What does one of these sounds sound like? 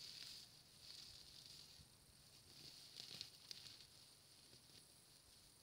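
Dry grass rustles and crackles as hands rummage through it.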